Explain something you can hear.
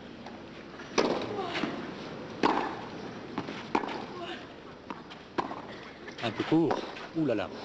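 Tennis balls are struck sharply by rackets in a rally.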